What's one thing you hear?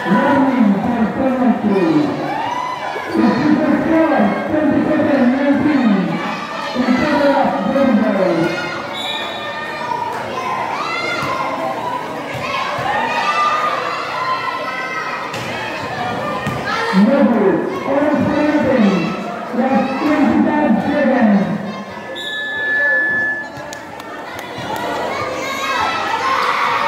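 A basketball bounces on a concrete court.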